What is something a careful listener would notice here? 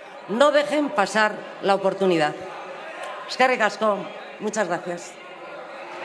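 A woman speaks forcefully through a microphone in a large hall.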